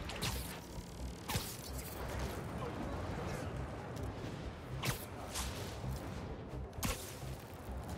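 Web lines shoot out with sharp, quick swishes.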